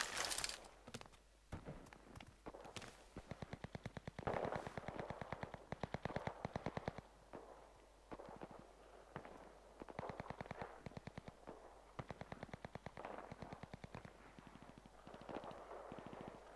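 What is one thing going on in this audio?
Quick footsteps clatter on a tiled roof.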